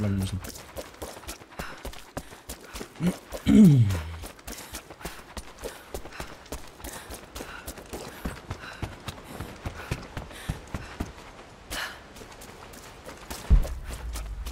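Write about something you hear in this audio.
Footsteps crunch quickly over dirt and wooden boards.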